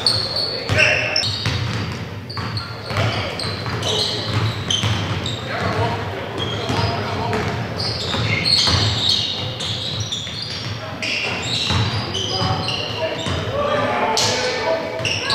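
A basketball bounces on a hard floor with echoing thuds.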